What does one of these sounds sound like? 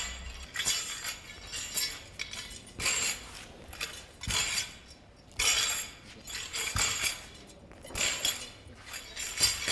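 Feet shuffle and stamp on hard ground.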